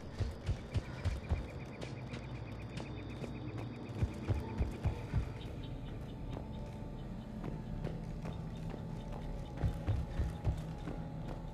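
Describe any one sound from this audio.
Heavy armoured footsteps thud on a hard floor.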